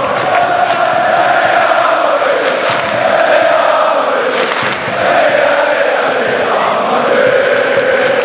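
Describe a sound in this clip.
A huge crowd sings and chants loudly together outdoors.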